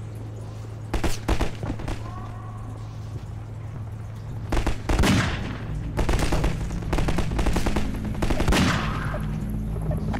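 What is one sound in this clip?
A pistol fires single sharp shots.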